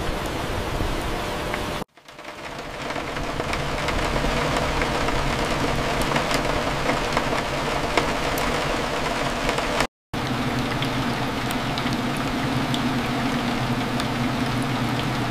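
Steady rain patters against window glass.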